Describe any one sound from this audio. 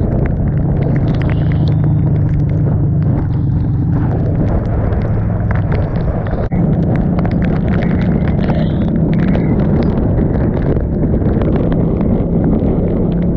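Wind buffets loudly as the motorcycle rides through the rain.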